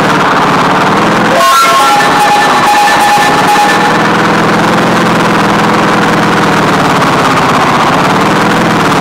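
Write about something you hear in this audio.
A cartoonish car engine hums steadily throughout.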